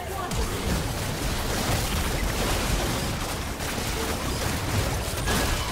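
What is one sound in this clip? Magic blasts and whooshes crash together in a hectic fight.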